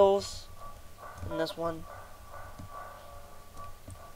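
A short video game pickup blip sounds.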